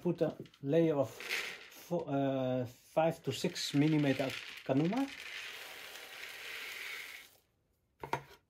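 Dry pellets pour and patter into a plastic tray.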